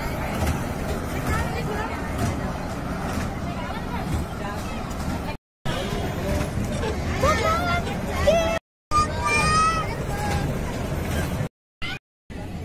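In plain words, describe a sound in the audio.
A fairground ride rumbles and whirs steadily.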